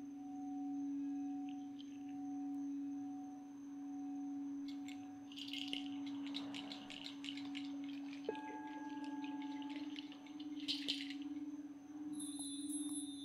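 A singing bowl rings with a steady, pulsing hum.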